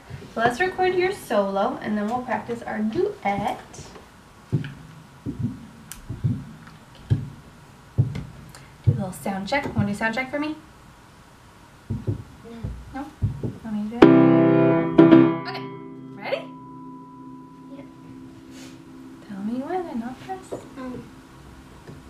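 A woman sings and speaks nearby with animation.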